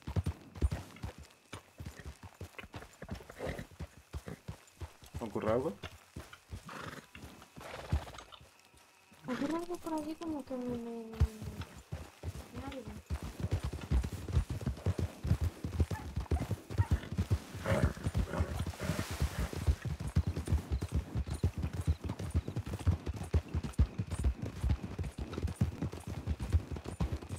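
Horses' hooves thud quickly on dirt as they gallop.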